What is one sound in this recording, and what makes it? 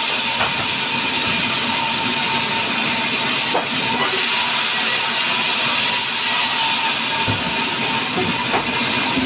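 A band saw whines loudly and steadily as it cuts through a log.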